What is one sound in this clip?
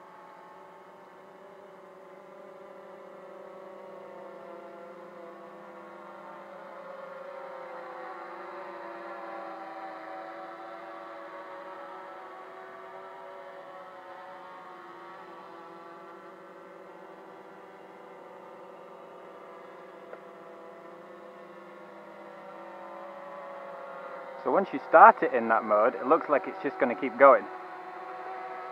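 A small drone buzzes steadily overhead as it circles.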